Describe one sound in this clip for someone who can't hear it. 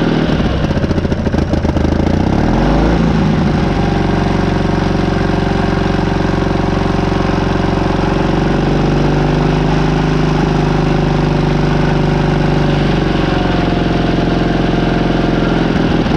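A large diesel engine runs loudly with a steady rumble.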